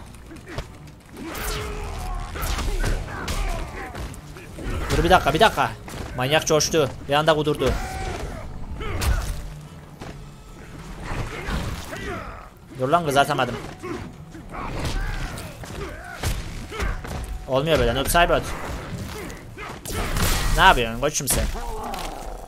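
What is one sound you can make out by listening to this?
Punches and kicks thud and smack.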